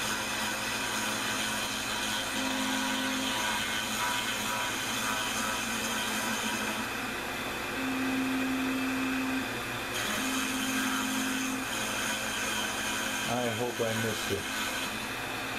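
A small milling machine whines steadily as its cutter grinds into a board.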